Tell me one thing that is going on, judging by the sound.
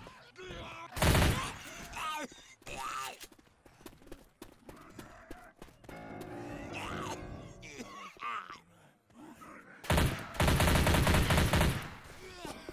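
A submachine gun fires short bursts.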